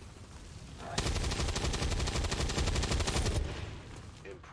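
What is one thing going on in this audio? A heavy gun fires a long rattling burst.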